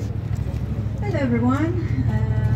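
A woman speaks through a microphone and loudspeaker.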